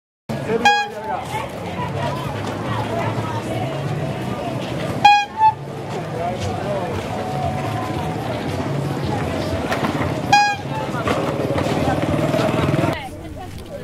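A handcart's wheels rattle over a rough road.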